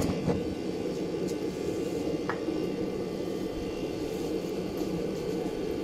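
An electric motor whirs with a steady, low hum.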